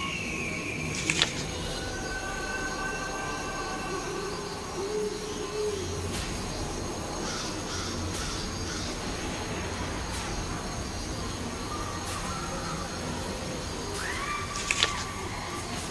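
A book page turns with a quick papery swish.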